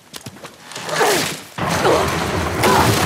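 A body plunges into water with a heavy splash.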